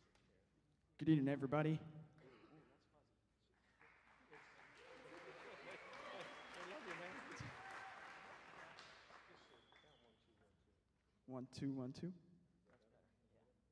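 A young man speaks loudly into a microphone in a large echoing hall.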